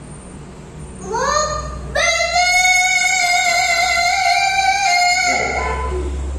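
A young girl chants a long melodic recitation through a microphone.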